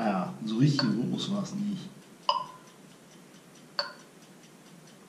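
An electronic keyboard plays a few short, bright notes.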